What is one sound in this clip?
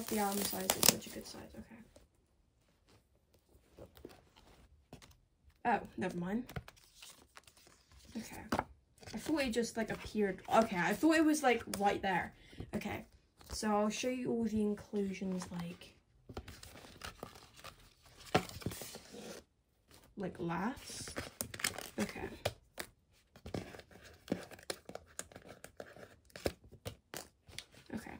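Stiff cardboard and paper rustle and scrape under handling.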